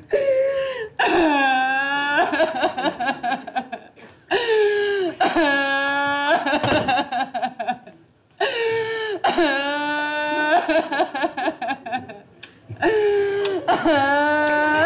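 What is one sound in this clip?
A young woman wails loudly in long, drawn-out sobs.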